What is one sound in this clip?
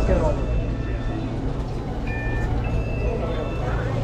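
An electronic scanner beeps.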